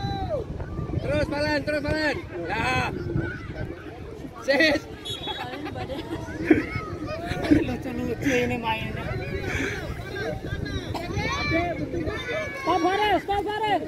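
Children shout and call out excitedly outdoors, some distance away.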